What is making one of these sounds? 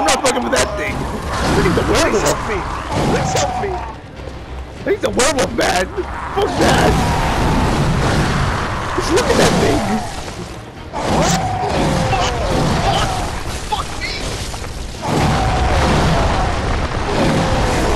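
A beast snarls and roars.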